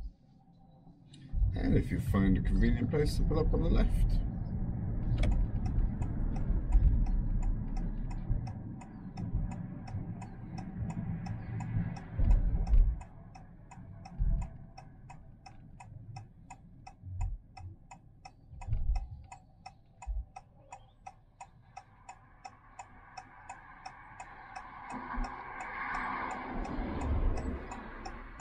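A car engine hums with road noise from inside the car.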